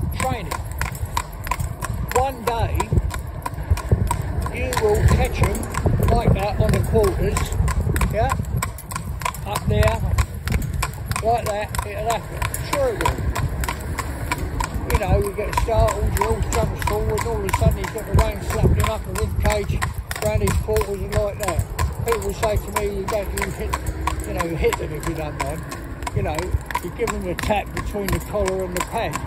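Horse hooves clop steadily on a paved road.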